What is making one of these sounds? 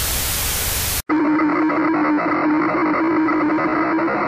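Electronic static buzzes loudly.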